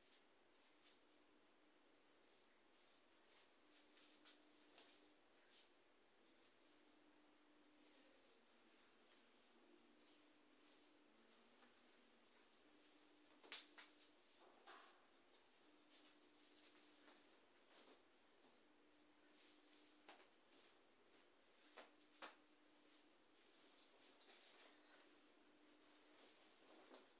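Clothes and bags rustle and thump as a man sorts through them.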